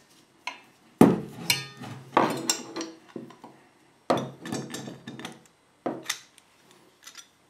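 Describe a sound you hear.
A metal padlock drops and clatters on a wooden bench.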